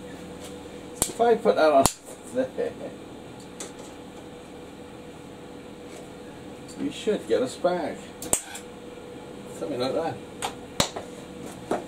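Metal clicks and knocks as a tool is handled.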